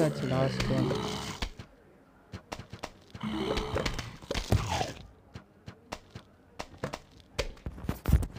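Cartoon plants pop out peas with quick, repeated soft thuds.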